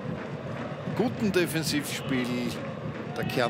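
Fans in a stadium crowd whistle sharply.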